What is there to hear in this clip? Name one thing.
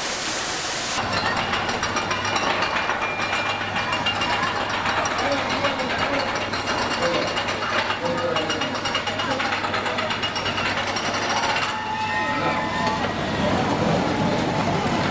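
A roller coaster rumbles and clatters along its track.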